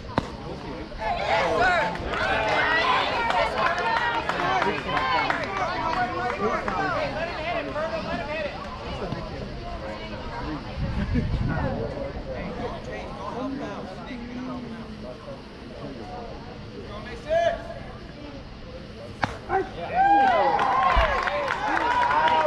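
Young players and spectators shout and cheer from nearby.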